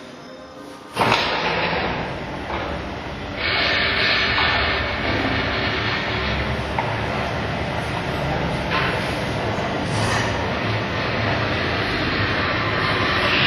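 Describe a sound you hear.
A garage door rattles and clanks as it rolls along its tracks.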